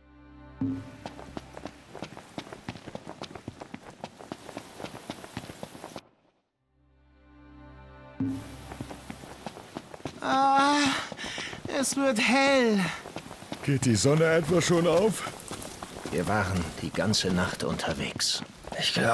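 Quick footsteps crunch on a dirt path.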